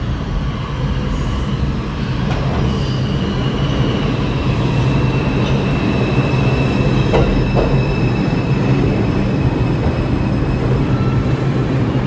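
Train wheels squeal and screech on the rails.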